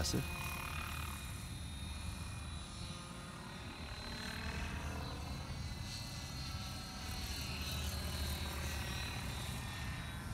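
An electric radio-controlled helicopter whines and whirs high overhead.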